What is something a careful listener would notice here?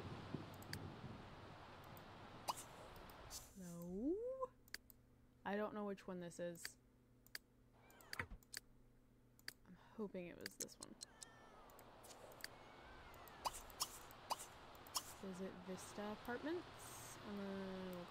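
Short soft clicks sound now and then.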